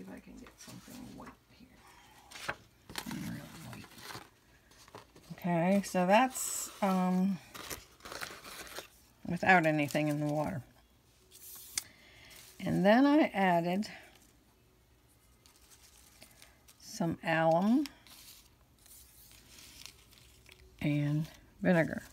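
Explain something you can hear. Ribbon strips rustle softly against paper as hands lay them out.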